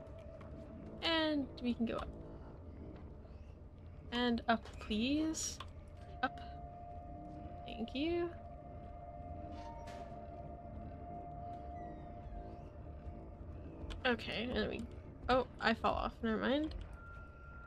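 A young woman speaks calmly into a microphone, in short bursts.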